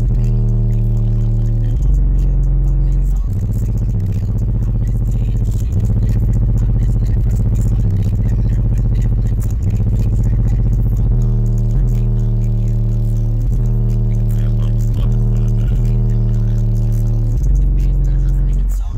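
Subwoofers boom with loud, deep bass tones that change every second or two.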